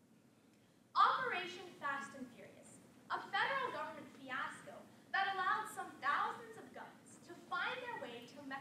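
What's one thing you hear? A young woman speaks calmly and clearly to an audience in an echoing room.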